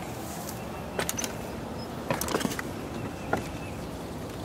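Footsteps knock on a ladder's rungs.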